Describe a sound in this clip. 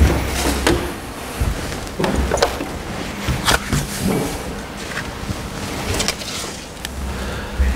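An elderly man speaks calmly into a microphone in an echoing hall.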